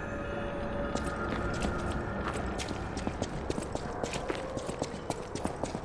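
Footsteps crunch quickly over stony ground.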